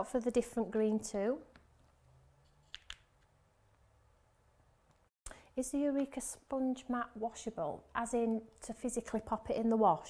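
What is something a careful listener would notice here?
A small plastic case clicks against a hard surface.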